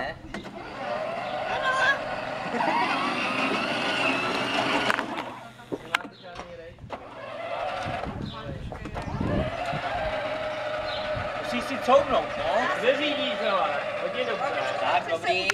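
An electric motor of a toy car whines steadily as it drives.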